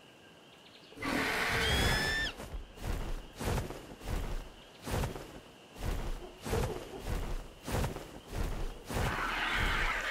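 Large wings flap in steady, heavy beats.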